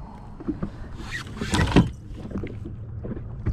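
Water splashes as a fish is dropped back in.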